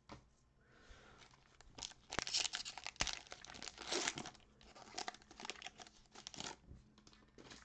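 A foil wrapper crinkles and tears as hands pull it open.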